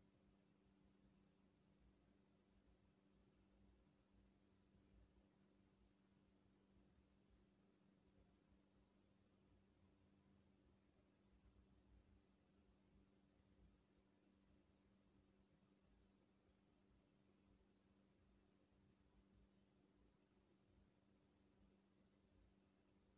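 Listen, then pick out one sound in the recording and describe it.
Air blows steadily through a floor vent with a low hum.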